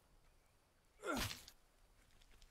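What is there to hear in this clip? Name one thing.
A wooden spear drops onto the dirt with a thud.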